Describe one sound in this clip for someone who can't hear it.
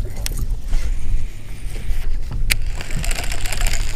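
Water laps against a boat hull.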